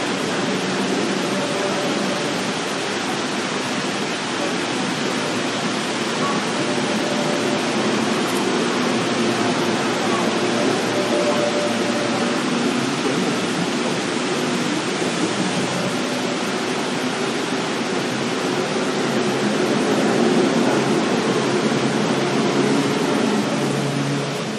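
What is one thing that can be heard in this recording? A train rumbles and clatters steadily along the tracks close by.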